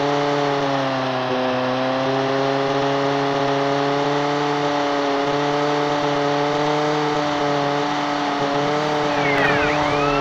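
A small propeller plane engine drones steadily.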